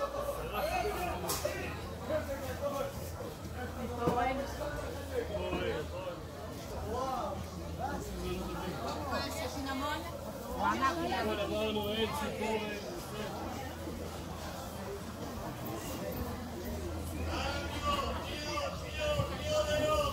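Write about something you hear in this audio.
A man speaks to a group nearby.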